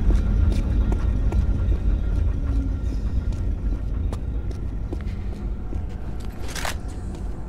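Footsteps run quickly on stone in a large echoing hall.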